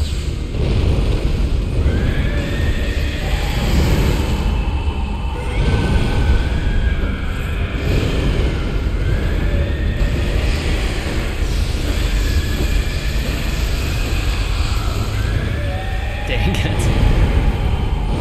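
Fire roars loudly and steadily.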